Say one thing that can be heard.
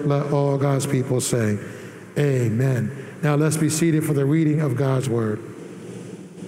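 A man sings a slow chant through a microphone in an echoing hall.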